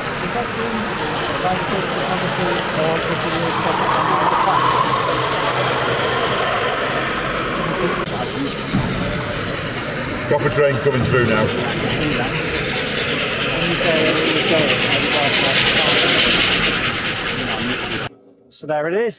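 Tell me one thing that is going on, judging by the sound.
Model trains rumble and clatter along tracks.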